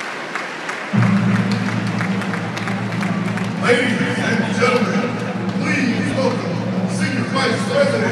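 Music plays loudly over loudspeakers across the hall.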